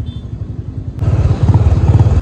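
A car engine rumbles as the car drives past close by.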